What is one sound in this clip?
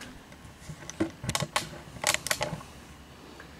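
A metal pick clicks and taps against a small plastic part.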